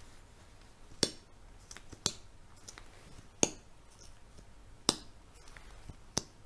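A cap snaps onto a tube.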